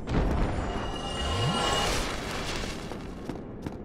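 Fire crackles and bursts as a flame spell is cast.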